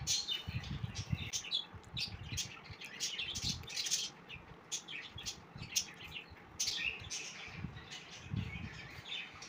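A young boy crunches crispy snacks close by.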